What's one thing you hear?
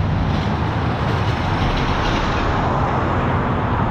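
A small bus rumbles past close by.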